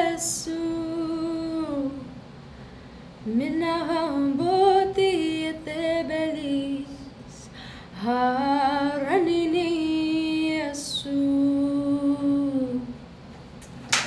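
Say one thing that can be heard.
A young woman sings slowly into a microphone.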